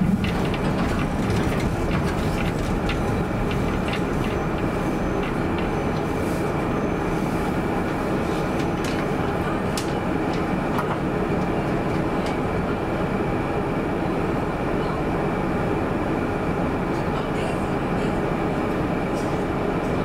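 Tram wheels click and clatter over rail joints.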